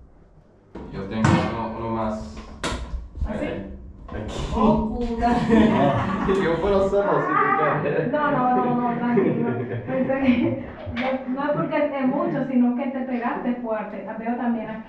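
A young man talks and laughs in a small echoing room.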